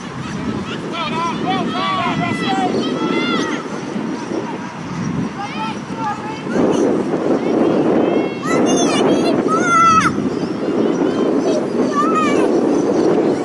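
Young women shout to each other in the distance.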